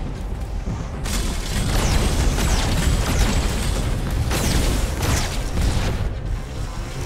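Electric zaps crackle loudly.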